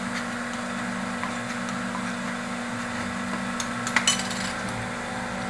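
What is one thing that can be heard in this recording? A metal tool pries at the lid of a can with sharp clicks.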